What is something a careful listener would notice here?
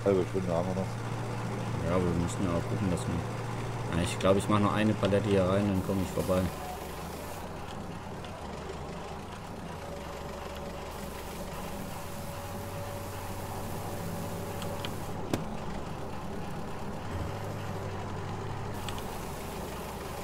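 A forklift engine hums steadily at low pitch.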